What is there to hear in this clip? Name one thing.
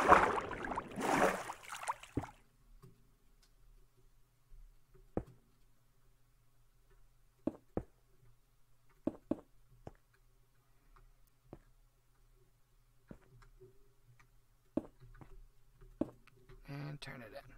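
Blocks are placed with soft, dull knocks.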